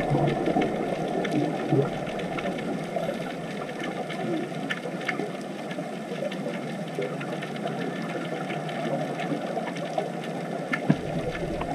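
Air bubbles from scuba divers gurgle and rumble, muffled underwater.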